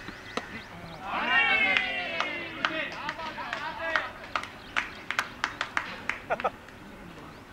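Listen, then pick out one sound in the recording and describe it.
Several young men shout and cheer excitedly nearby.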